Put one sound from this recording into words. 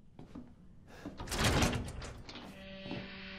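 A heavy metal door unlocks and creaks open.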